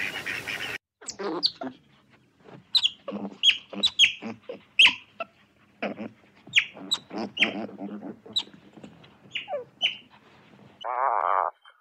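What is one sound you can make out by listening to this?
Otters squeak and chirp with high calls.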